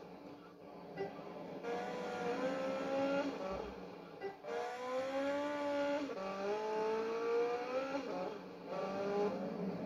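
A motorbike engine revs and whines, rising and falling in pitch as it shifts gears.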